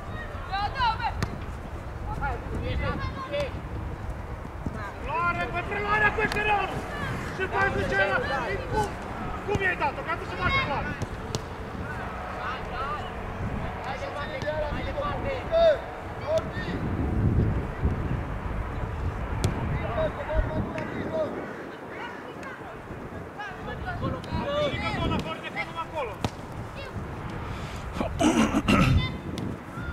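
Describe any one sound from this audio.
Young players shout and call to each other from across an open field.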